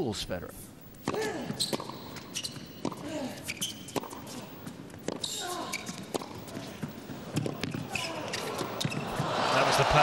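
A tennis ball is struck sharply by rackets in a rally.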